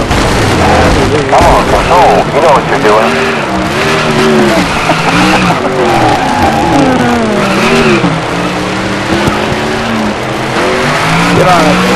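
A race car engine roars loudly, its pitch rising and falling as it shifts gears.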